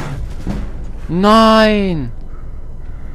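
A large beast roars loudly.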